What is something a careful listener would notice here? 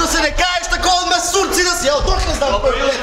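A young man shouts with animation on a stage.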